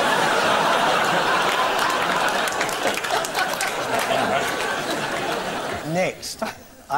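A group of people claps in a room.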